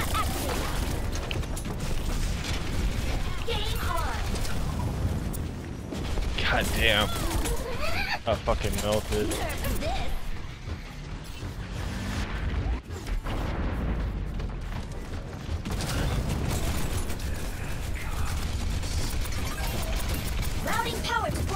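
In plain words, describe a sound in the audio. A mech's heavy footsteps and thrusters rumble steadily.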